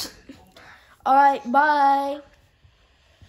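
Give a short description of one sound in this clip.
A young boy calls out in a long, drawn-out voice.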